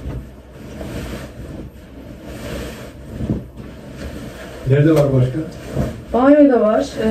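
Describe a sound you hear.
Fabric rustles and flaps as it is shaken and folded.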